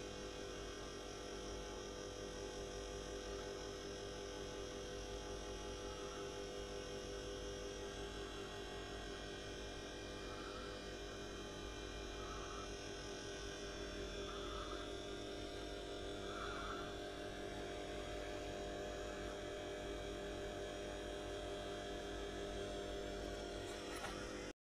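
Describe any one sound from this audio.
An aquarium air pump hums steadily.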